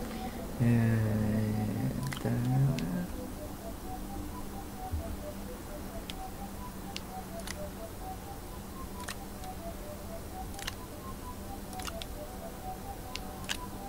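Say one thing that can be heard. Soft interface clicks sound as a menu is opened and browsed.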